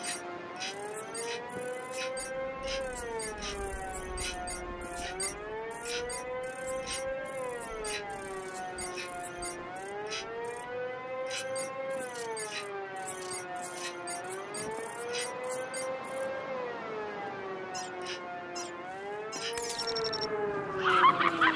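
An electronic device hums with a tone that slowly rises and falls in pitch.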